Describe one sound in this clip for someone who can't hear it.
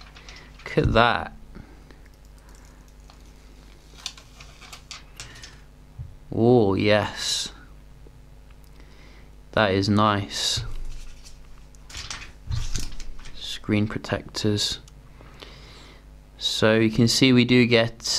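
Fingers handle a phone with faint taps and rubs.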